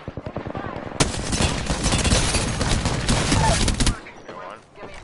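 Rapid gunfire bursts loudly from an automatic weapon.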